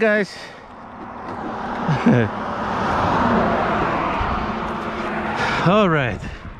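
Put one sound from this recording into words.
Small tyres rush over rough asphalt.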